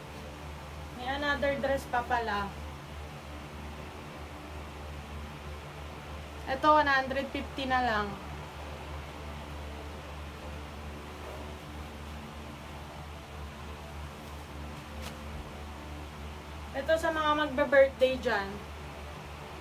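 A young woman speaks close by, in short bursts and with animation.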